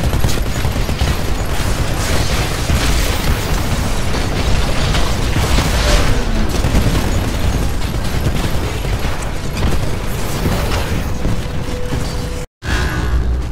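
Explosions rumble loudly.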